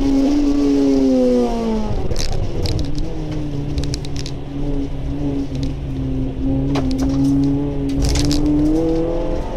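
Windshield wipers thump across the glass.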